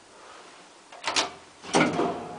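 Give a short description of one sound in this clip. A lift button clicks as a finger presses it.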